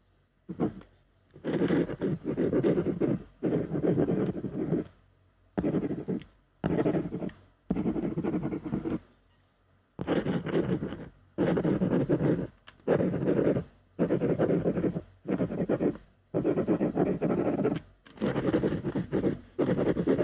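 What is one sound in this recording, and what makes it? A pen scratches across paper in short bursts, close by.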